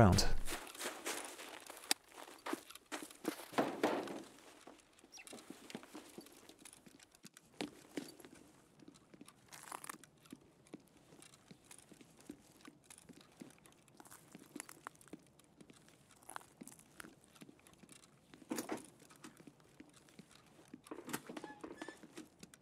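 Footsteps tread across hard floors and stairs.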